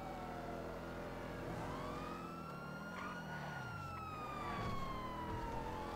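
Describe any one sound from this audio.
A car engine roars at speed, its pitch rising and falling as it shifts gears.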